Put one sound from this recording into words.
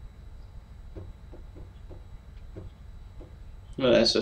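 Footsteps tap lightly on a hard floor.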